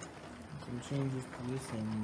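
A toy train is pushed along plastic track by hand.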